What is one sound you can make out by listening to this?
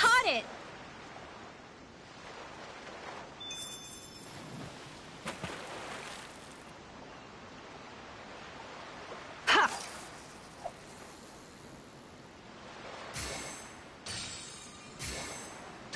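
Water laps gently and steadily.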